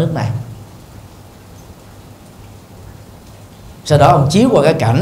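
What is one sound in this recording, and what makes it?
A middle-aged man speaks calmly into a microphone, with pauses.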